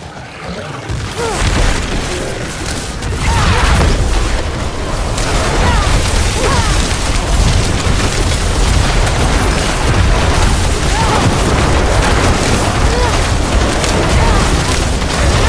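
Spells crackle and blast in a game battle.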